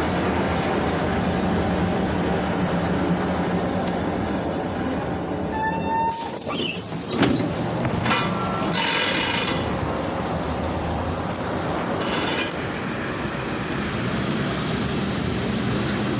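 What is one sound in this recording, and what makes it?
Traffic hums in the street outdoors.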